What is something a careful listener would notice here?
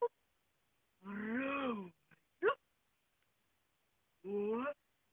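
An animal lets out longer, wavering howls.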